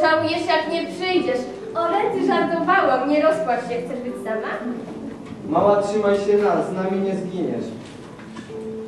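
A teenage girl talks with animation, heard through a microphone.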